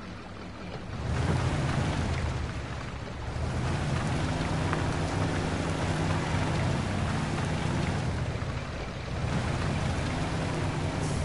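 An off-road vehicle's engine revs and growls.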